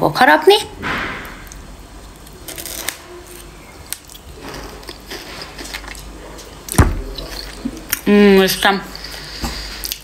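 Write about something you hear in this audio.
A young woman chews food with her mouth full.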